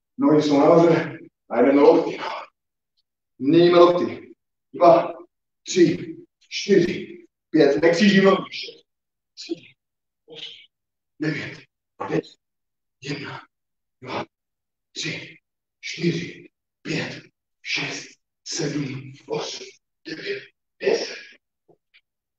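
A man counts aloud in short, rhythmic bursts, close to the microphone.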